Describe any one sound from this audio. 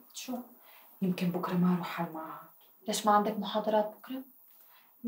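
Another young woman answers softly up close.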